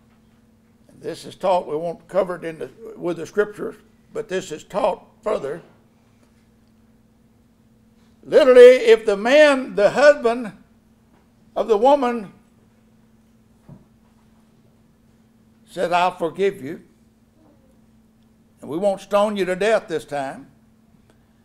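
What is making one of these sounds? An elderly man speaks calmly into a microphone, with pauses, heard through a loudspeaker.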